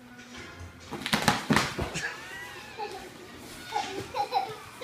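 A cardboard box thumps and rustles as small children tumble into it.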